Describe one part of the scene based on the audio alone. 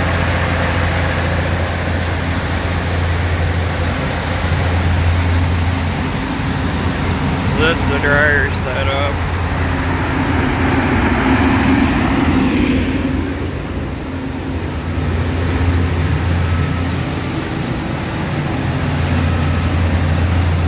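A large fan drones steadily with a low hum.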